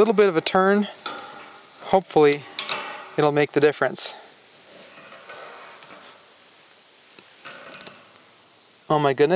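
Pliers grip and turn a metal fitting with a faint scrape.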